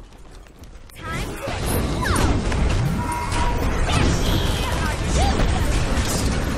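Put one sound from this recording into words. Icy magic blasts crackle and whoosh in a game battle.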